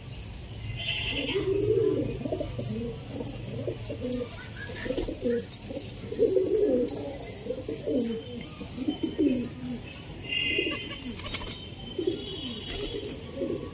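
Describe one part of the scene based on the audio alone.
Pigeons coo softly and repeatedly close by.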